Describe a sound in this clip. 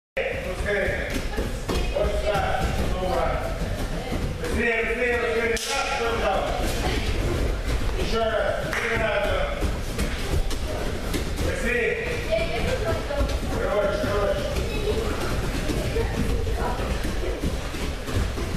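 Bare feet thud and patter quickly on a padded floor.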